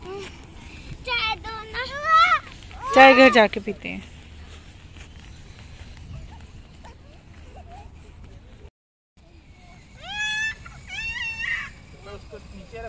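Small children shout and squeal excitedly.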